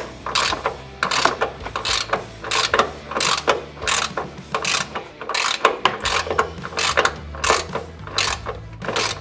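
A ratchet wrench clicks in quick, repeated bursts close by.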